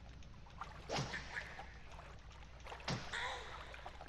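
A heavy blow smashes a wooden door apart.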